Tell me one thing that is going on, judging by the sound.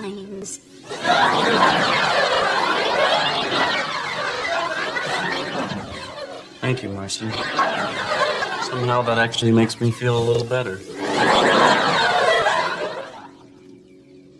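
An elderly man talks.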